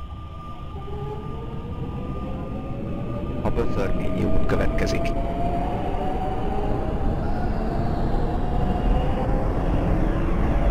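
A train's motor whines, rising in pitch as the train speeds by.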